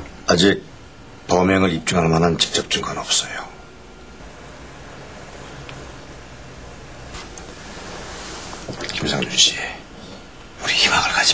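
A middle-aged man speaks firmly and close by.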